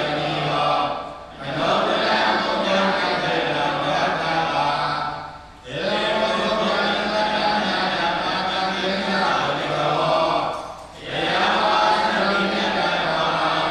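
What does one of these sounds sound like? An elderly man speaks steadily into a microphone, heard through a loudspeaker.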